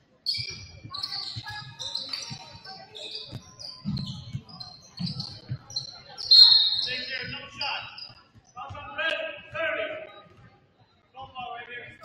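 Young players and spectators call out across the gym.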